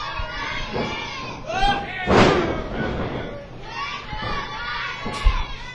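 A wrestler's body thuds onto the ring mat.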